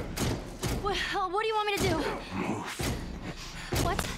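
A young girl speaks urgently up close.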